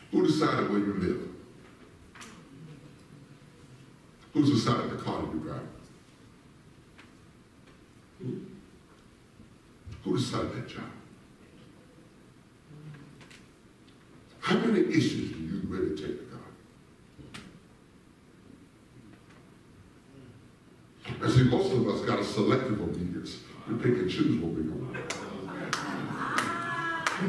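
A man preaches through a microphone in bursts, echoing in a large hall.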